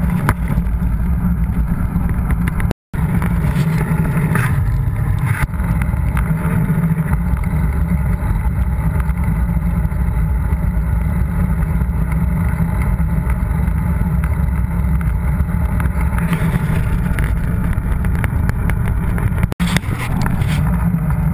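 Wind buffets the microphone with a heavy, steady rumble.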